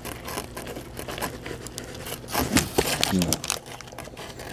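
A paper wrapper crinkles and rustles close by.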